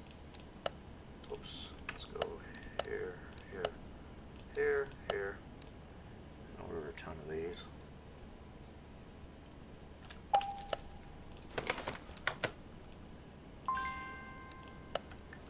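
Short interface clicks tick as menu items are picked.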